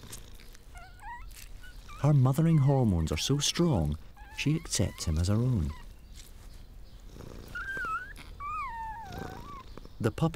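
A small puppy whimpers with thin, high squeaks.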